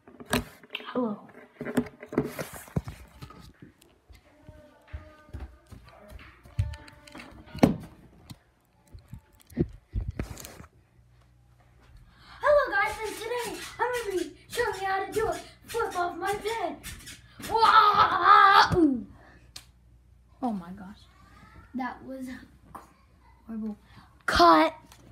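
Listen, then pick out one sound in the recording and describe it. A young boy talks close to the microphone with animation.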